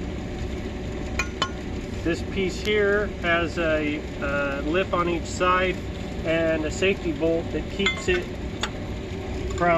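Metal parts clink and knock as they are handled on a concrete floor.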